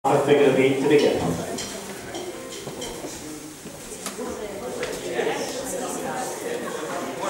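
A small band plays lively dance music in a large echoing hall.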